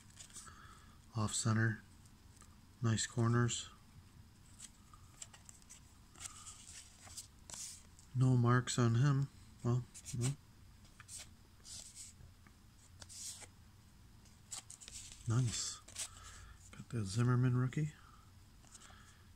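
Trading cards slide and rustle softly between fingers.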